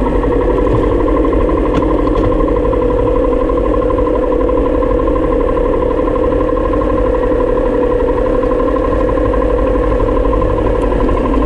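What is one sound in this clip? A motorcycle engine runs steadily close by.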